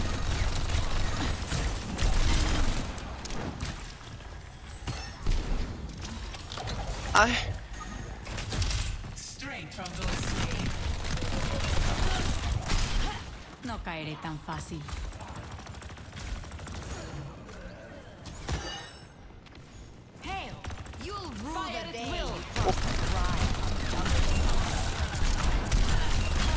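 Rapid gunfire blasts in bursts.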